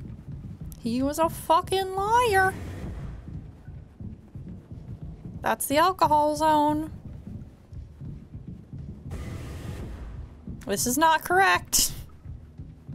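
A young woman speaks animatedly in a high voice close to a microphone.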